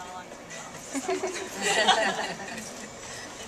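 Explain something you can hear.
A woman laughs aloud.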